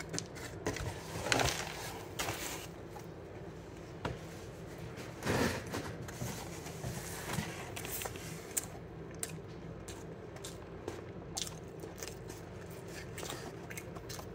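A cardboard box rustles and bumps as it is handled.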